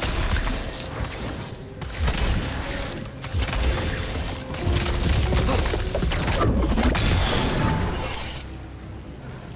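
Magic blasts crackle and burst loudly.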